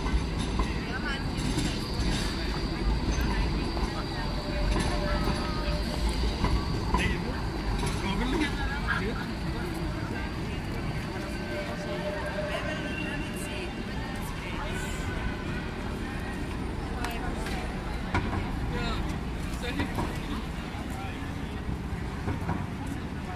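A tram rolls by on rails.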